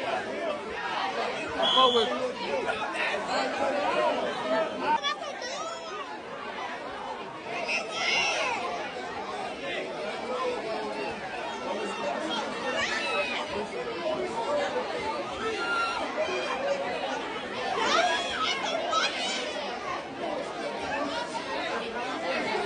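A crowd of young men and women talk and shout over each other.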